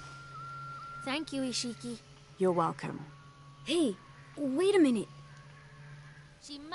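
A young boy speaks with animation.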